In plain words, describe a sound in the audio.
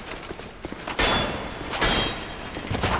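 A sword clangs against a metal shield.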